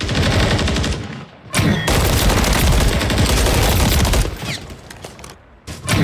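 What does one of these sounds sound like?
Rapid gunfire bursts ring out.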